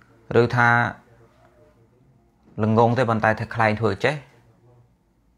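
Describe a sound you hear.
A man speaks calmly and close into a clip-on microphone.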